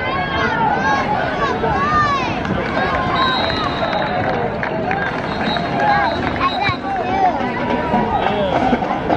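Many young men shout and cheer loudly outdoors.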